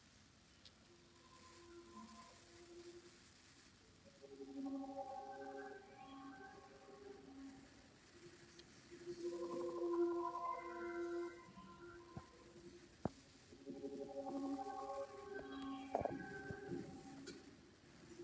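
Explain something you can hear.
Orchestral fanfare music plays through a television speaker.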